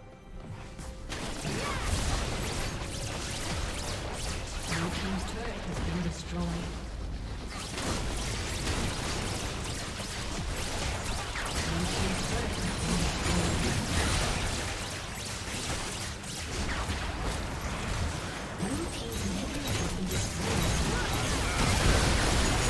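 Game spell effects crash and crackle during a battle.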